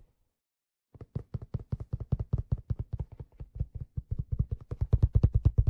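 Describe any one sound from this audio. Fingertips drum rapidly on a hollow plastic shell close to a microphone.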